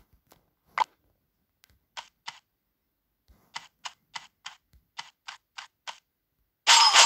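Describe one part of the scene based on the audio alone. Short game interface blips sound in quick succession.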